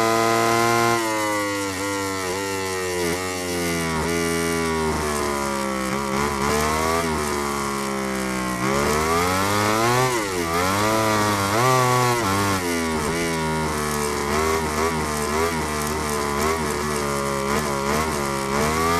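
A motorcycle engine drops and rises in pitch as the bike brakes and accelerates through corners.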